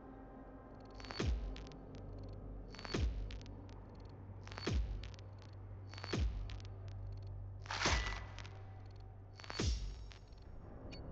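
Short whooshing sound effects sweep past every couple of seconds.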